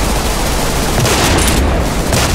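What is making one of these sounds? An explosion booms and scatters debris.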